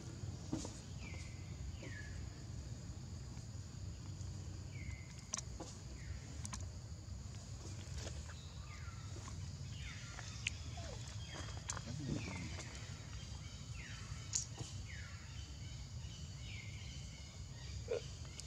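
A baby monkey squeaks softly, again and again.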